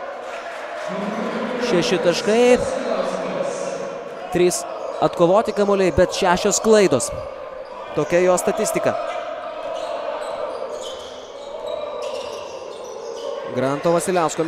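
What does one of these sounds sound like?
A small crowd murmurs in a large echoing hall.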